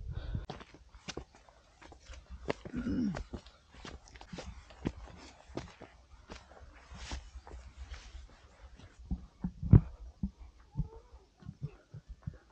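Boots crunch and scuff on a dirt path.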